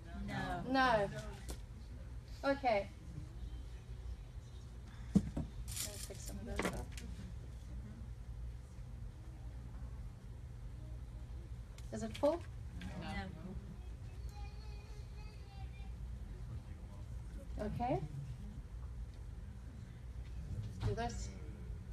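A woman speaks calmly into a microphone over loudspeakers in a large room.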